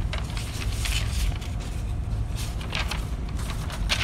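Sheets of paper rustle as they are turned over.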